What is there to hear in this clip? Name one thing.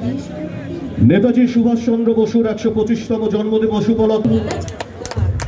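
A crowd chants loudly outdoors.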